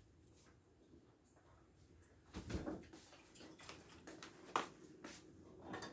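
A fridge door opens and shuts.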